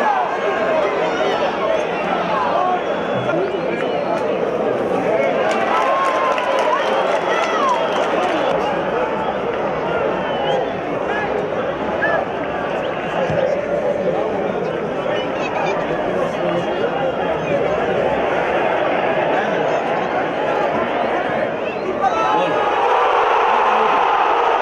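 A large crowd chants and cheers loudly outdoors.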